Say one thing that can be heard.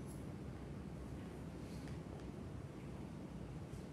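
A man's footsteps thud softly across the floor.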